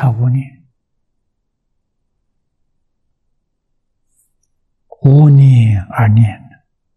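An elderly man speaks calmly into a microphone, lecturing.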